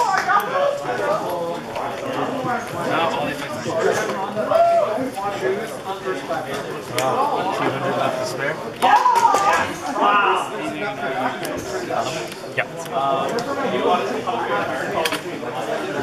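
Young boys talk with each other close by.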